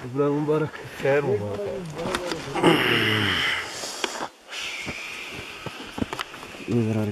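Men talk with animation close by, outdoors.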